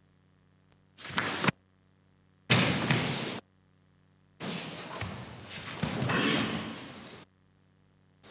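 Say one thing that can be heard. Heavy cotton martial arts uniforms rustle and snap as two men grapple.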